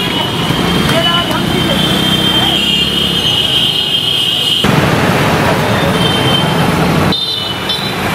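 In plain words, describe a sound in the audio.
A motorcycle rides past.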